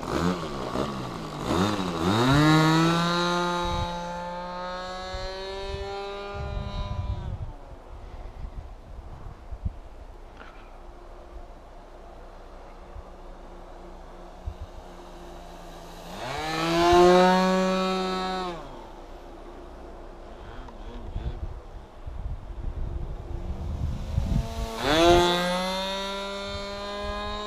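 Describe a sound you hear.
A model plane's electric motor whines loudly, rising and falling in pitch as it revs up and eases off.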